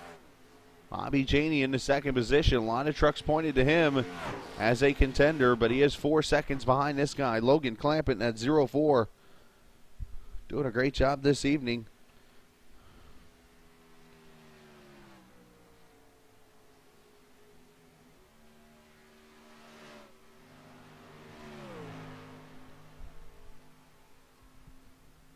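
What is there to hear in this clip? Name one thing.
A racing truck engine drones steadily at high speed, its pitch rising and falling as it passes.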